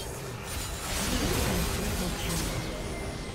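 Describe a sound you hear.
A structure blows up with a loud, booming blast.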